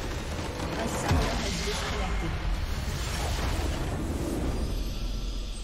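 A game structure explodes with a loud boom.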